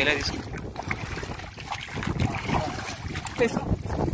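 Water splashes as a fish thrashes in shallow mud.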